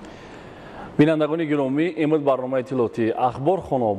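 A young man reads out calmly and clearly into a microphone.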